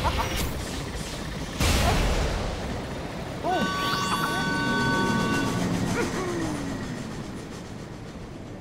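Wind howls steadily through stormy clouds.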